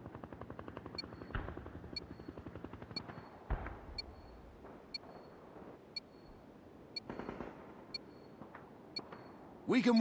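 A countdown beeps once each second.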